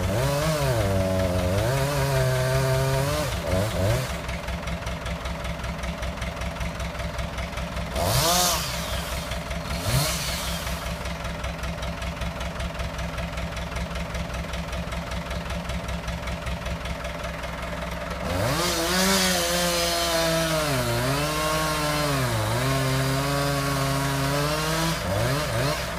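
A tractor engine idles with a steady throb.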